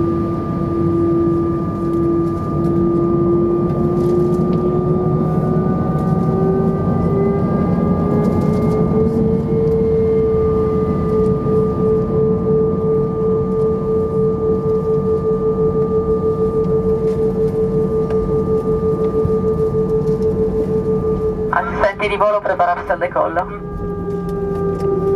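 Jet engines hum and whine steadily from close by.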